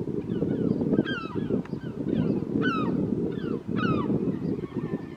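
Birds call with repeated high chirps in the trees.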